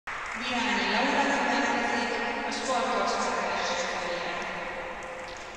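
Spectators cheer and whoop in a large echoing hall.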